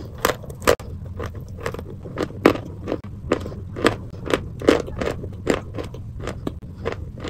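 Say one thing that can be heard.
A young woman makes soft, wet mouth sounds close to a microphone.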